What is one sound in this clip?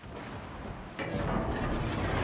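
Ship guns fire with heavy booming blasts.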